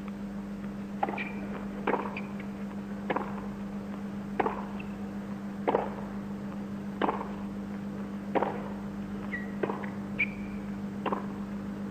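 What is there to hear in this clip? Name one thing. Tennis rackets hit a ball back and forth in a steady rally of sharp pops.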